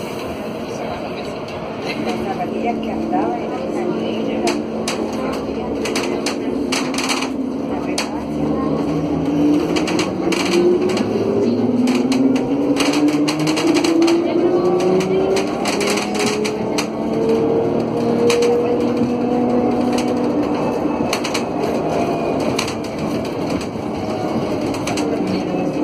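A bus engine hums steadily, rising in pitch as the bus speeds up.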